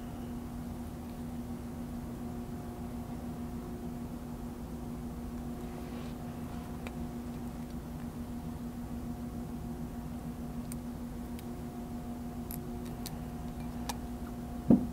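Small metal pliers click sharply.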